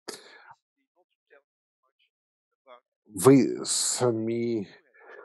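A middle-aged man speaks with animation through a headset microphone.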